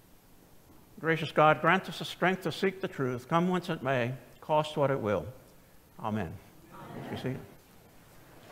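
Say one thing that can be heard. An elderly man speaks with animation through a microphone in a large echoing hall.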